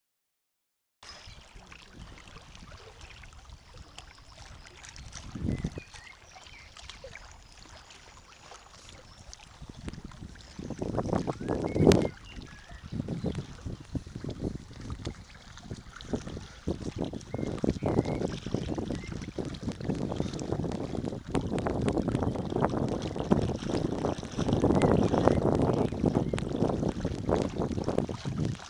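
Water laps gently against stones at the shore.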